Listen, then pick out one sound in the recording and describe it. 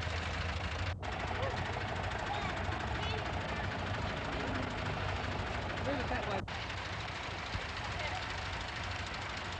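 A tractor engine idles nearby.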